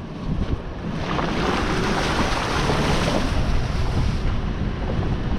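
Tyres splash through a muddy puddle.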